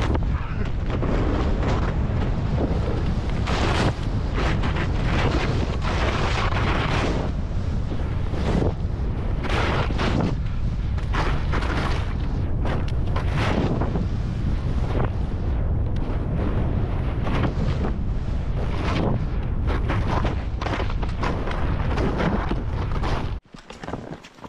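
Wind rushes loudly past as a skier speeds downhill.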